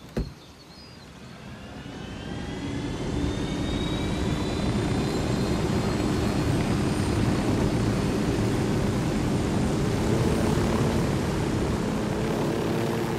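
A helicopter engine starts up, its whine rising to a steady roar.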